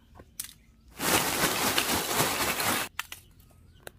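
Charcoal lumps clatter as they are poured out.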